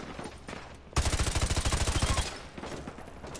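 Automatic gunfire rattles in a rapid burst.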